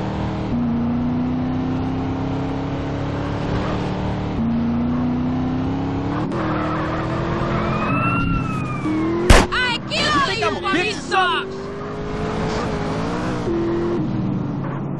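A car engine hums and revs steadily while driving.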